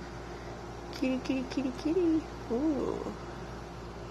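A cat gives a short trilling meow.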